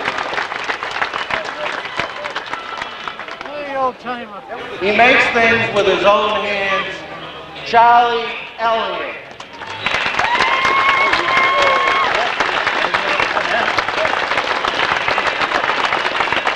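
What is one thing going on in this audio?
A crowd murmurs and cheers in the background.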